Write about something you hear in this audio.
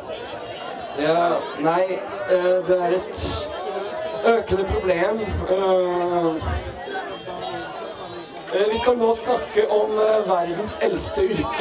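A man speaks with animation into a microphone over a loudspeaker.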